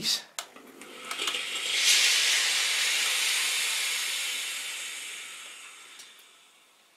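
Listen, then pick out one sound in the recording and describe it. A steam iron hisses steadily, then slowly fades.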